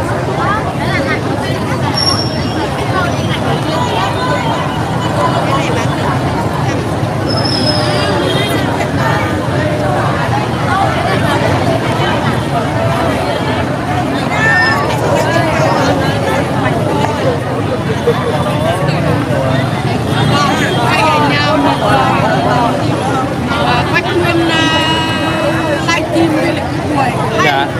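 A large crowd of men and women chatters nearby outdoors.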